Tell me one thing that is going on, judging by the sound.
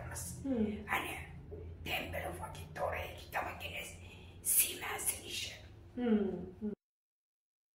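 An elderly woman speaks calmly and clearly into a nearby microphone.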